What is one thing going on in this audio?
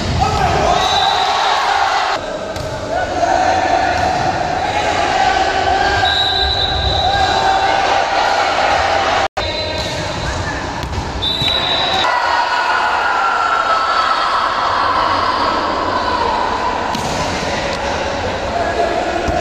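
Spectators and players shout and cheer in a large echoing hall.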